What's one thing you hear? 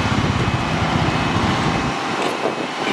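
A heavy diesel engine rumbles loudly close by.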